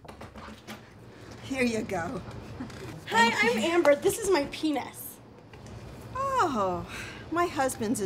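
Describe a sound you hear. An elderly woman speaks loudly and with animation nearby.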